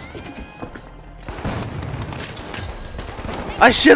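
A gun fires a quick burst of shots.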